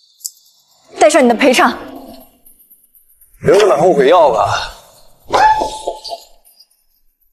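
A young man speaks with annoyance, close by.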